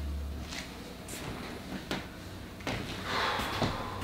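Footsteps walk away across a hard floor.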